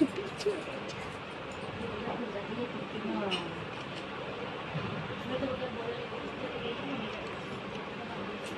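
Women talk quietly nearby.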